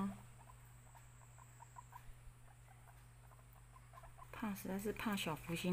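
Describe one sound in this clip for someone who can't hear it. A cat's paws tap softly on a cage floor.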